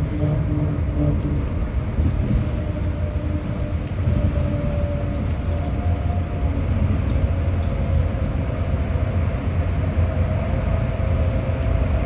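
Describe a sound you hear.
Tyres hum on the road, echoing inside a tunnel.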